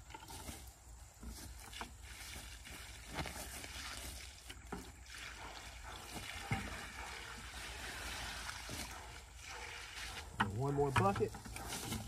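Wood chips rustle and crunch as they are scooped into a plastic bucket.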